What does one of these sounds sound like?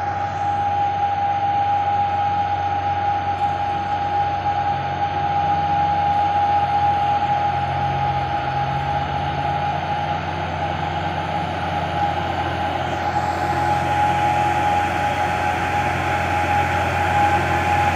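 A heavy truck engine rumbles as the truck drives slowly uphill.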